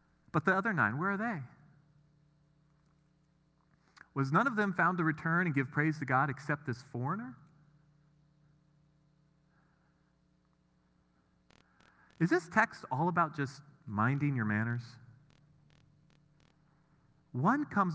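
A man speaks through a microphone with animation, in pauses.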